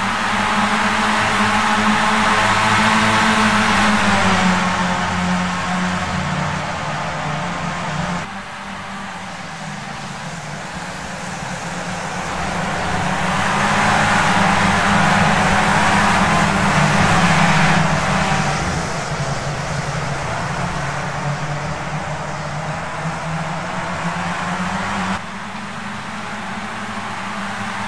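Racing car engines roar loudly, rising and falling in pitch as the cars shift gears.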